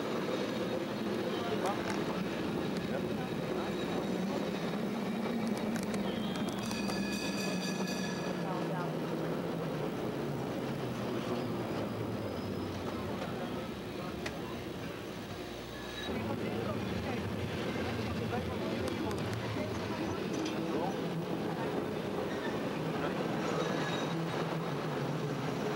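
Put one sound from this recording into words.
A cable car rumbles and rattles steadily along its tracks.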